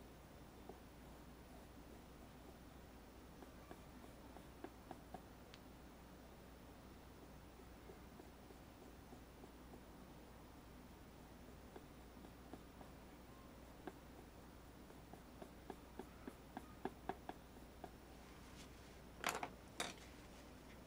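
A paintbrush taps and scrapes softly on canvas.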